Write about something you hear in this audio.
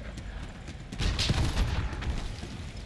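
An explosion booms loudly nearby.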